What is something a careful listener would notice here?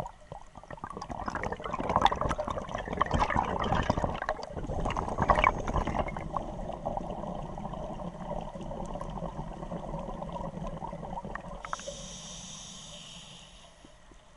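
Scuba bubbles gurgle and rumble loudly underwater.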